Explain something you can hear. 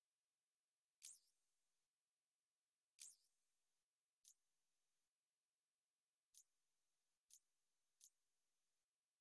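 Short electronic menu chimes sound a few times.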